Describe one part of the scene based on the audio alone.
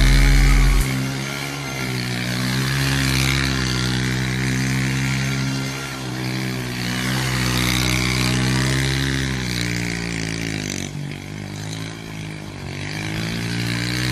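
A motorcycle engine idles and revs loudly close by.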